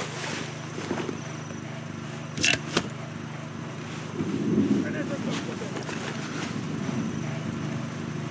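Footsteps crunch softly on snow.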